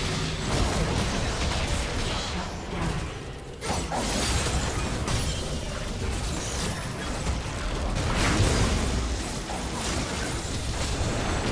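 Spell effects and attacks crackle and burst in a fight.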